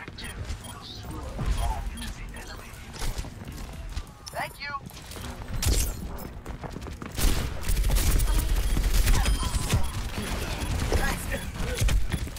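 Gunfire from a game weapon rattles in rapid bursts.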